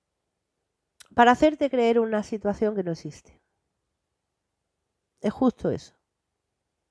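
A woman speaks softly and closely into a microphone.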